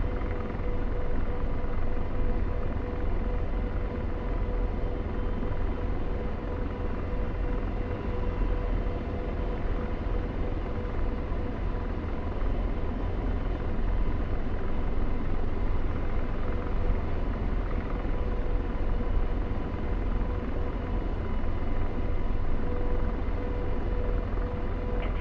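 A helicopter's engine and rotor roar steadily from inside the cockpit.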